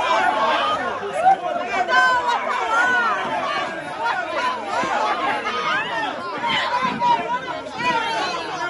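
A crowd of men and women shouts and cheers loudly outdoors.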